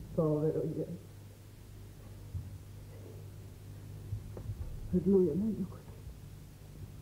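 An older woman speaks calmly and seriously.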